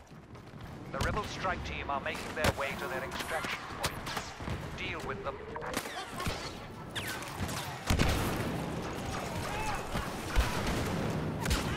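Blaster guns fire in rapid, sharp bursts.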